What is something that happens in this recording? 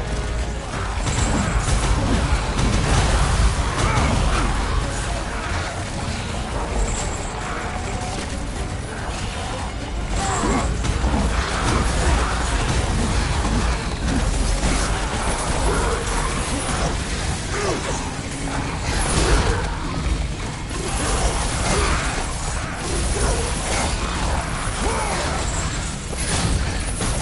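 Blades slash and strike enemies again and again.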